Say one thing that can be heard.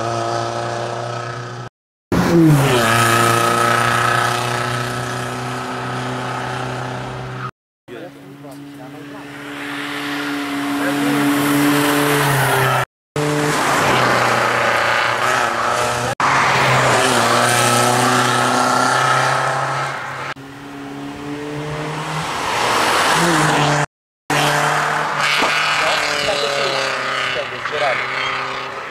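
A rally car engine revs loudly and roars past at high speed.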